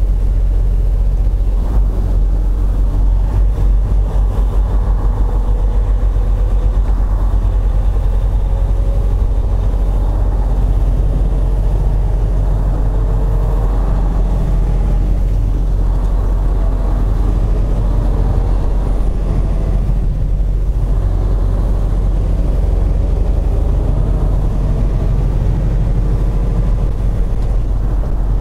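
A truck's diesel engine rumbles steadily as it drives.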